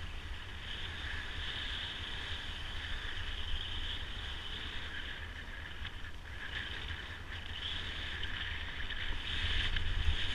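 Skis scrape and hiss steadily over packed snow.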